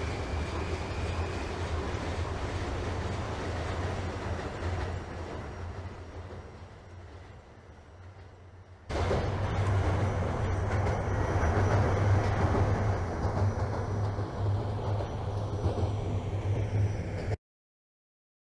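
A subway train rumbles along the tracks.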